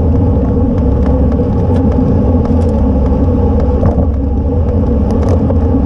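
A bicycle clicks and rattles over bumps.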